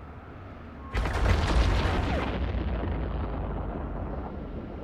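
A large explosion booms with a deep rumble and slowly fades.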